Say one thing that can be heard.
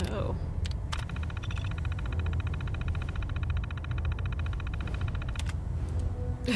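A computer terminal ticks rapidly as text prints out.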